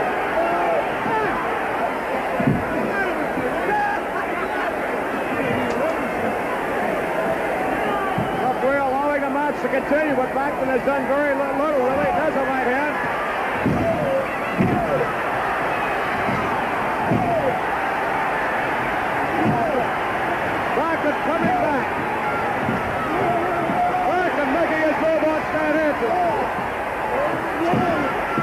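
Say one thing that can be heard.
Bodies thud heavily against a wrestling mat.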